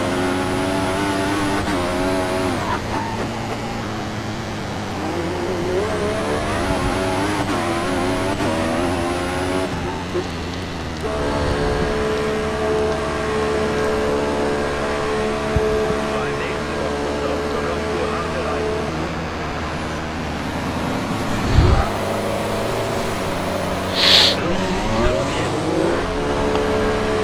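A racing car engine whines and revs at high pitch.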